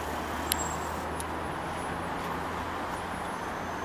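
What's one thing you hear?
Trolley poles rattle and click on the overhead wires.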